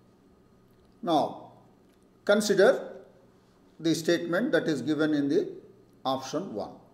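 An elderly man lectures calmly into a microphone, with pauses.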